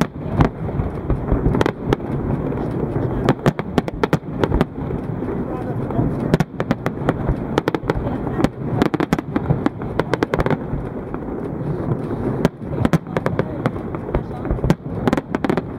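Fireworks rumble and boom steadily in the distance.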